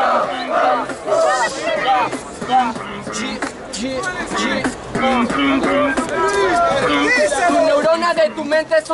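A young man raps rapidly through a loudspeaker.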